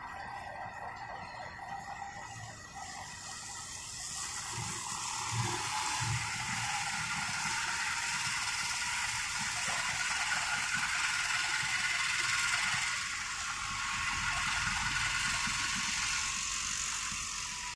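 Cars drive past on a wet road, their tyres hissing through water.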